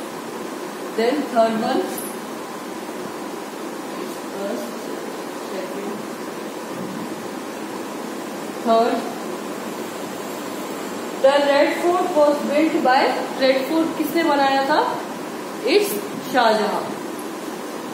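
A young woman speaks calmly and clearly, close by, in short bursts.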